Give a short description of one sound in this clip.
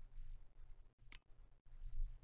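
A short, sharp interface click sounds once.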